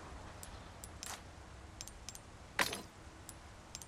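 A soft whoosh sounds as a new menu panel opens.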